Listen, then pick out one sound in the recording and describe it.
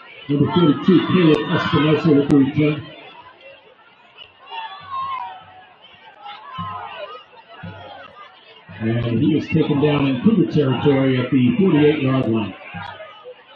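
A crowd of spectators cheers and shouts outdoors, in loud bursts.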